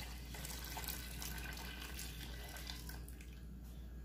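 Liquid pours into a pan.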